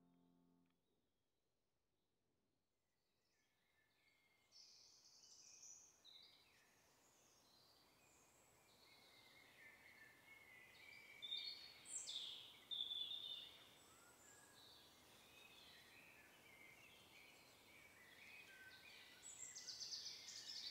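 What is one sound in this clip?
A badger snuffles and rustles through dry leaves.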